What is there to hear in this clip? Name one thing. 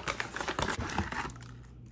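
A cardboard box is torn open with crackling paper.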